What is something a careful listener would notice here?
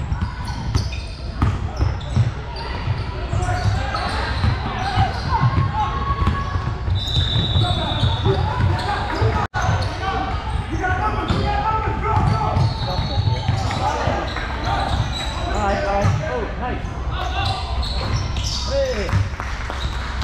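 Young players shout and call out to each other.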